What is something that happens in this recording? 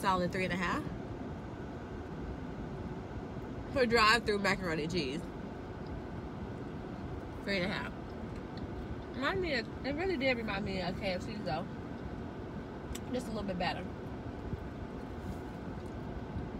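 A young woman chews food.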